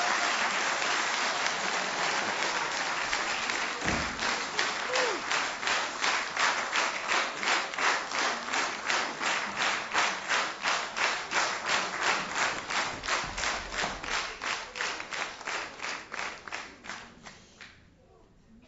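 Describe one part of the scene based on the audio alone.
A large audience claps in steady rhythm, then the clapping fades.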